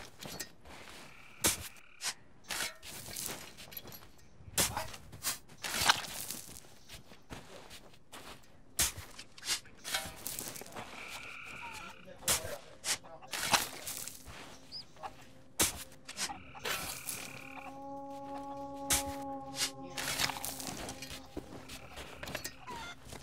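A shovel digs repeatedly into soft earth.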